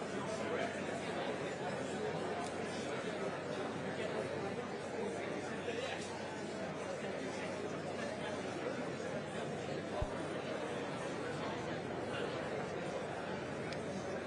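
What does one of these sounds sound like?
An audience chatters in a large echoing hall.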